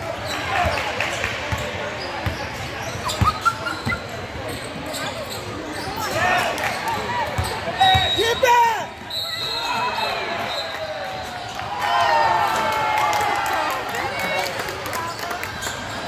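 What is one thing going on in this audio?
Sneakers squeak sharply on the wooden floor.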